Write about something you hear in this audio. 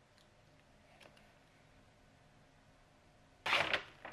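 A plastic package crinkles in hands.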